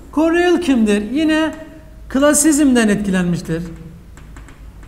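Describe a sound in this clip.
A young man speaks loudly and clearly, close by.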